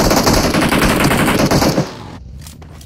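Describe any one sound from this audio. A buggy engine roars loudly.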